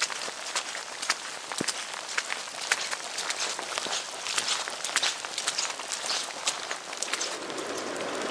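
Footsteps squelch and crunch on a wet dirt path.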